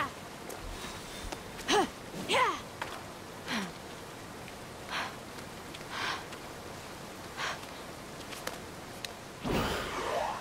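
Hands grip and scrape against rock as a figure climbs a cliff.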